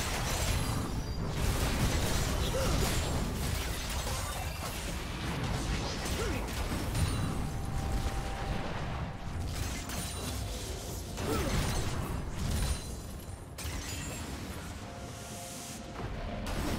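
Spell effects crackle and whoosh as game characters fight.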